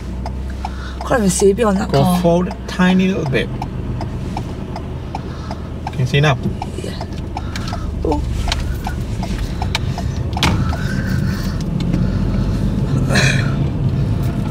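A man speaks calmly inside the car.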